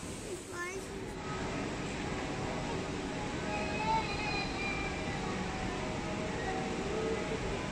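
Water rushes loudly over a weir.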